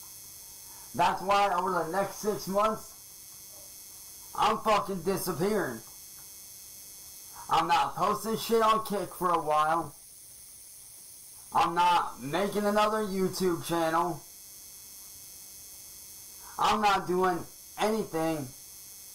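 A young man talks with animation, close to a microphone, in short bursts.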